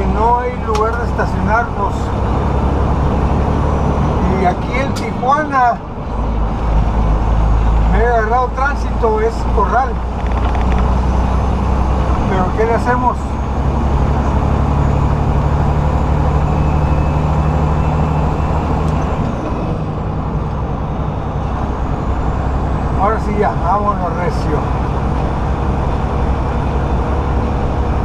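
Tyres roll along a paved road with a steady rumble.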